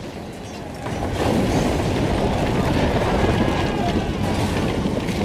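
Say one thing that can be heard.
Water surges and splashes loudly.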